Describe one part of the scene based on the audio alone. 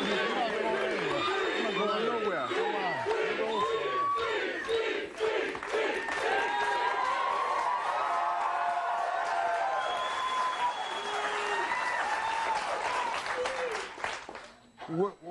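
A large audience cheers and whoops.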